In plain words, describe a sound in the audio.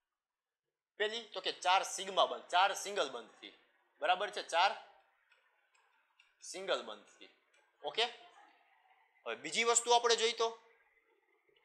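A young man speaks clearly into a clip-on microphone, explaining.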